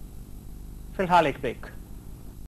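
A man speaks clearly and calmly through a microphone.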